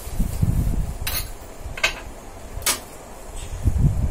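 Small metal objects clink on a shelf.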